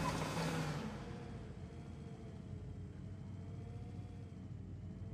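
A forklift engine hums steadily as it drives.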